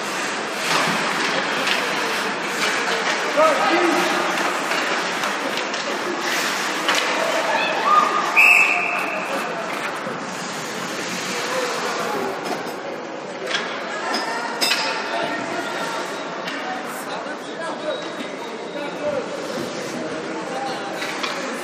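Spectators chatter and call out in an echoing arena.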